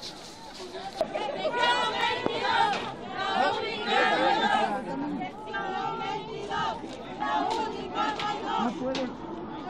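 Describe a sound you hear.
A man speaks loudly through a microphone and loudspeaker.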